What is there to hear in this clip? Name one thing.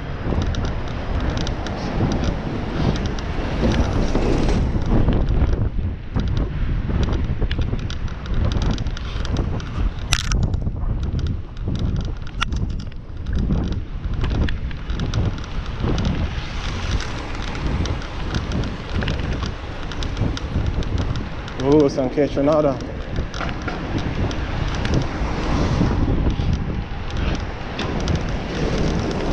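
Bicycle tyres roll on a paved road.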